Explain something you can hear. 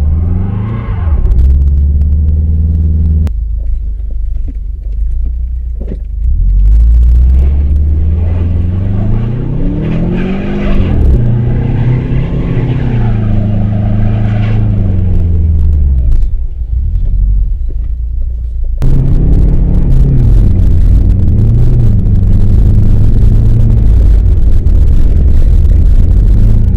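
Tyres crunch and rumble over a snowy road.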